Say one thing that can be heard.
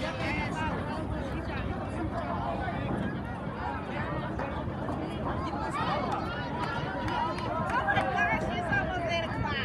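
A crowd of young people chatters and shouts nearby outdoors.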